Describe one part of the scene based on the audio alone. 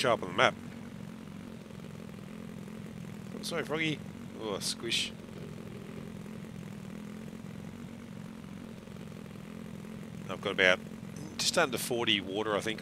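A quad bike engine hums steadily.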